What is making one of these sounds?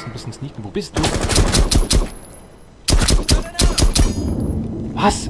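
Rapid gunfire bursts out in loud volleys.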